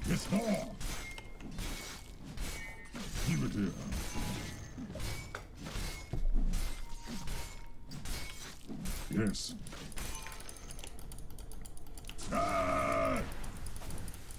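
Game sound effects of spells and hits crackle and clash.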